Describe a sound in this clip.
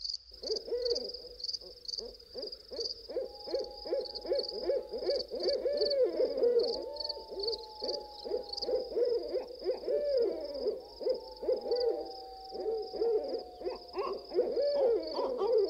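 An owl hoots softly.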